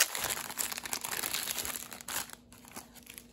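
A plastic sleeve crinkles and rustles in someone's hands.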